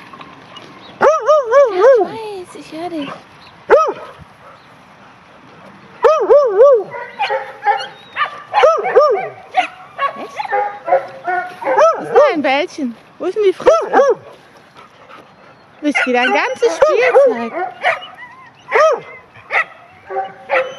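A dog barks repeatedly, loud and close.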